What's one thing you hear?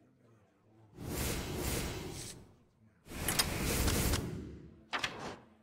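A magical whooshing effect sweeps by twice.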